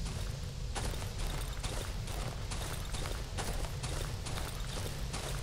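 Footsteps crunch slowly on gravel.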